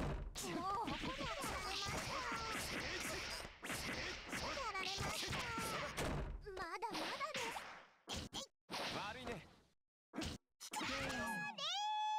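Fighting game blows land with sharp hits and whooshes.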